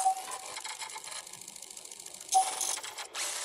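An electronic console gives short beeps.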